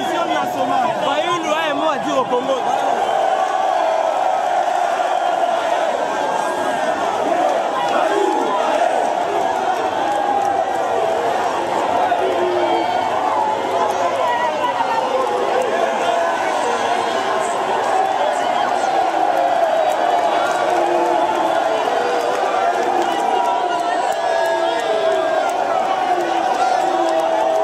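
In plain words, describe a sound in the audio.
A large crowd cheers, sings and shouts loudly outdoors.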